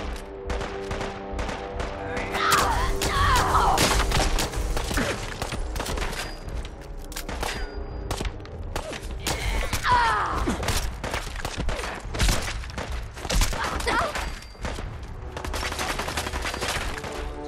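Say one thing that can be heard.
Rapid gunfire cracks and rattles in quick bursts.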